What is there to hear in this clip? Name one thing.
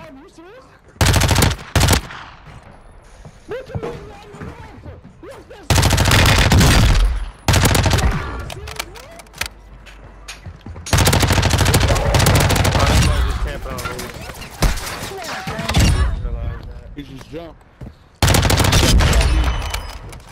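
An automatic rifle fires in loud, rapid bursts.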